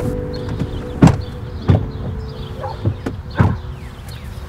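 Car doors slam shut.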